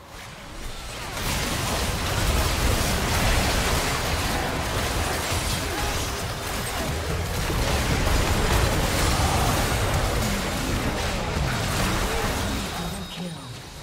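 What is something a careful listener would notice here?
Spell blasts and hits crash in rapid bursts during a video game battle.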